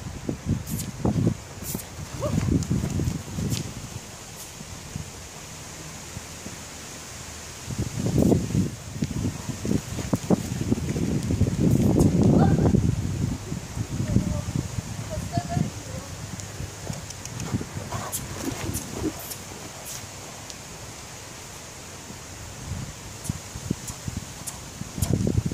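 A horse's hooves thud on soft sand as it canters.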